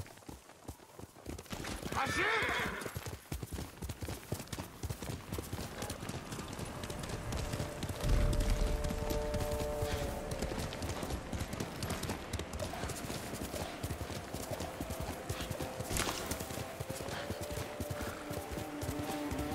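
A horse gallops with quick, thudding hoofbeats.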